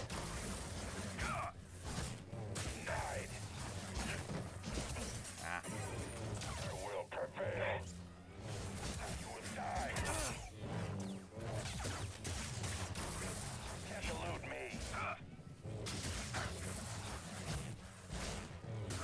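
Lightsabers hum and clash.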